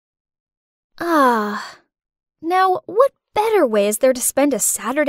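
A young woman speaks expressively in a close, clear voice.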